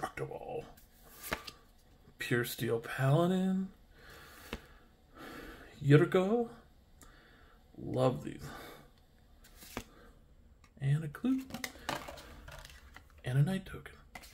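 Playing cards rustle and slide against each other in hands.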